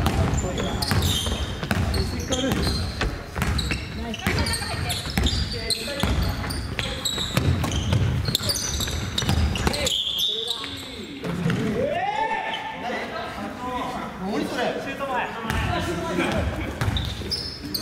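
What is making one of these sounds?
Young players shout and call out to each other in a large echoing hall.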